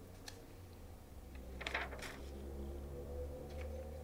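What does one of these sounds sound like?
A magazine page rustles as it is turned.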